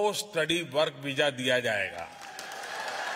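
An elderly man speaks emphatically into a microphone in a large echoing hall.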